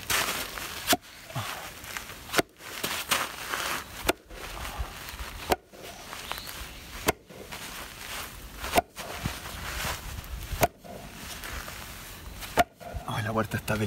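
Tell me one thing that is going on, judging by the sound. A metal bar thuds as it tamps soil around a post.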